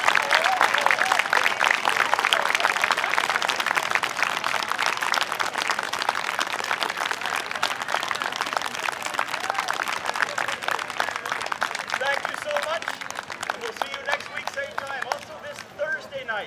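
An outdoor crowd applauds, loudly at first and then fading.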